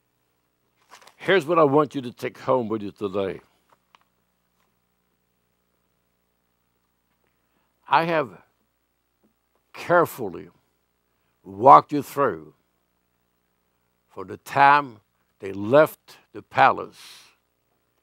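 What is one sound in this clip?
An elderly man speaks with emphasis into a microphone, with pauses between phrases.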